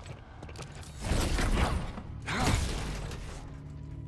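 A whooshing energy pulse bursts out and fades.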